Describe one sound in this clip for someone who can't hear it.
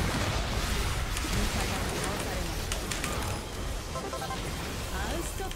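Fantasy battle sounds crackle and clash in a busy fight.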